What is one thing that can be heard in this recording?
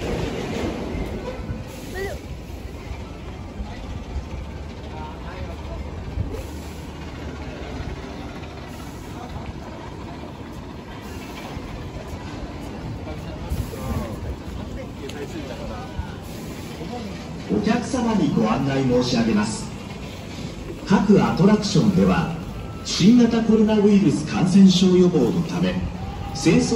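A crowd murmurs steadily in the background outdoors.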